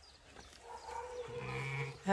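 A sheep bleats deeply nearby.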